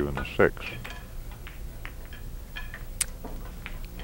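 A cue stick strikes a ball and billiard balls click together sharply.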